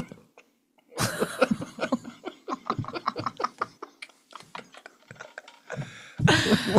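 A man and a woman laugh together.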